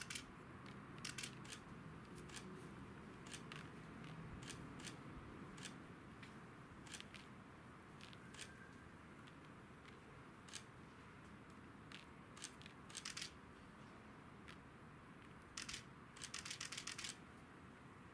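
Small objects click and tap in a woman's hands.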